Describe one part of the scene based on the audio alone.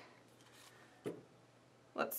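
Rolls of tape are set down on a table with a light knock.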